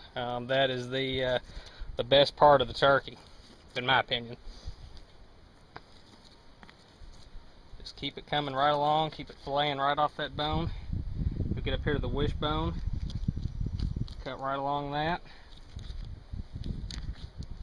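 Feathers rustle and tear as hands pluck a bird close by.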